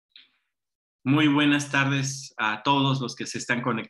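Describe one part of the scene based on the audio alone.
A man speaks calmly through an online call.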